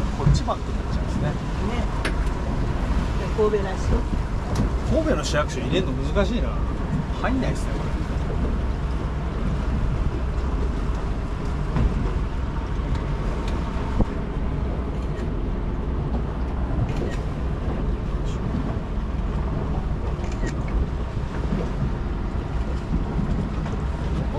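Wind buffets loudly, outdoors on open water.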